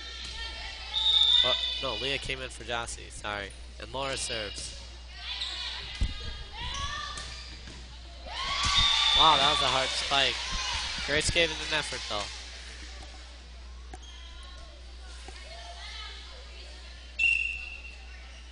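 A referee blows a whistle sharply.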